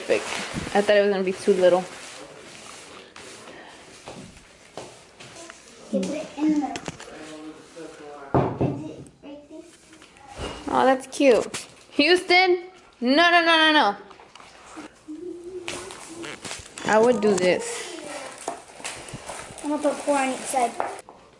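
A young girl talks and exclaims close by.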